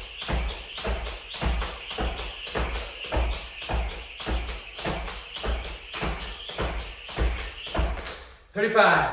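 A jump rope whirs and slaps the floor in a quick, steady rhythm.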